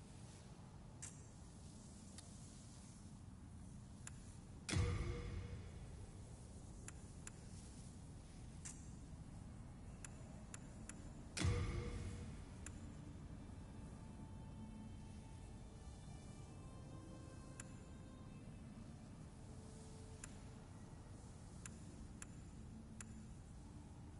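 Soft clicks tick repeatedly.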